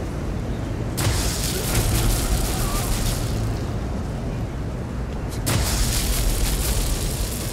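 Electricity crackles and buzzes in loud bursts.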